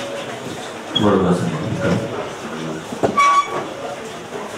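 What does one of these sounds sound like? Several men sing a hymn together.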